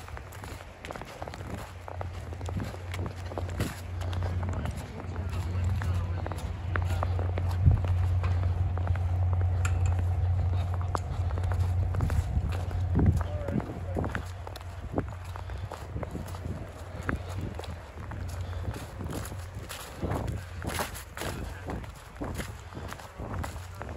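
Footsteps crunch on thin snow and dry leaves.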